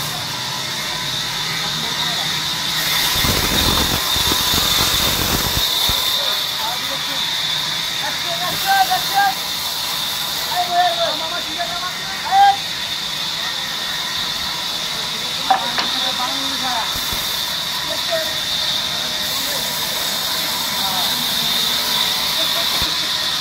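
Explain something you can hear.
A sawmill machine runs with a steady whine.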